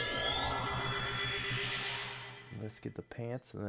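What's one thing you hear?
A bright, sparkling magical shimmer swells and then fades away.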